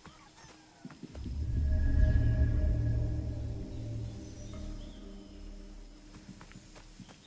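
A deep, ominous rumble swells and slowly fades.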